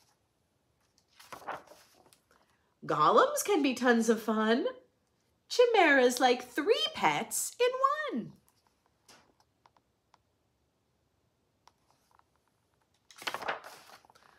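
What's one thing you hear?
Book pages rustle as they turn.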